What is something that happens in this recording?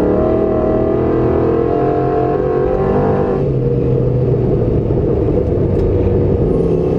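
A rally car engine roars loudly at high revs, then drops in pitch at a gear change.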